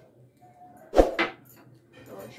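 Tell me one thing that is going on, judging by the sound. A cup clinks down on a table.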